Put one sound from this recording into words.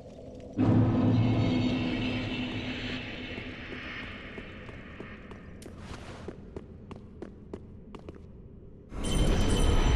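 Armoured footsteps clink on a stone floor.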